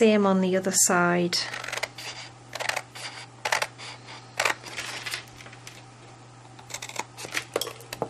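Scissors snip through thick paper.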